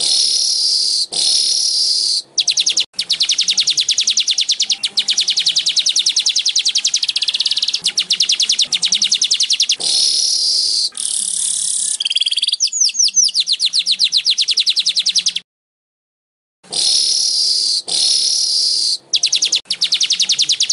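A small bird sings loud, rapid buzzing trills close by.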